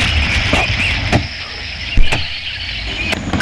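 An axe chops into a tree trunk with sharp knocks.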